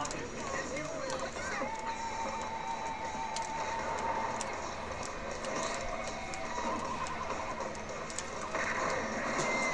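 Fighting game blows clash, zap and crackle.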